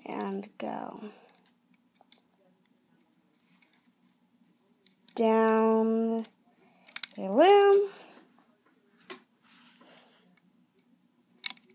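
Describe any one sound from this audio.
Rubber bands snap softly onto plastic pegs.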